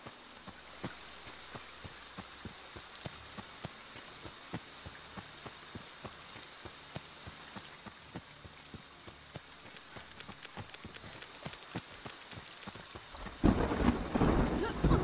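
Running footsteps thud steadily on a dirt path.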